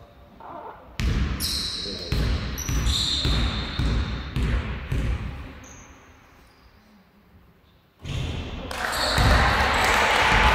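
A basketball bounces and thuds on a hard floor in a large echoing hall.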